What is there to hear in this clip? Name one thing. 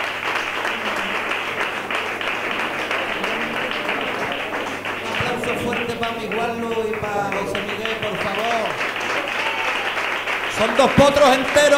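A crowd chatters in a room.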